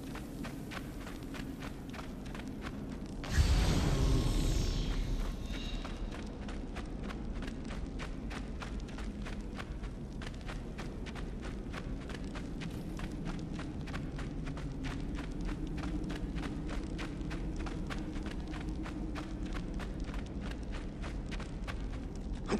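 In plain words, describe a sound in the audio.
Footsteps crunch steadily through soft sand.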